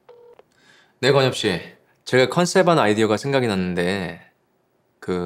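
A young man speaks calmly into a phone, close by.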